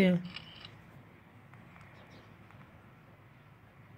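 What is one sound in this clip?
Phone keypad buttons click softly.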